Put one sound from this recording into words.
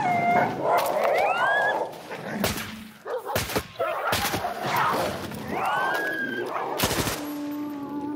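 Dogs bark and yelp.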